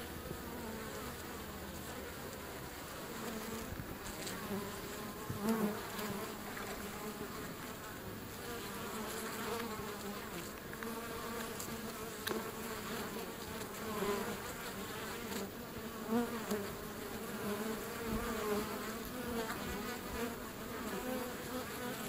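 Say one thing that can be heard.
A swarm of bees buzzes loudly close by.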